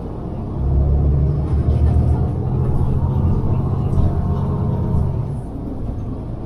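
A truck engine rumbles loudly close by.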